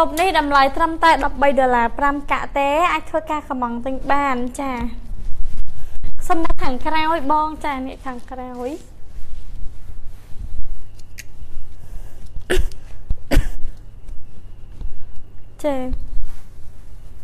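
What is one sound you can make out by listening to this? A young woman speaks with animation close to the microphone.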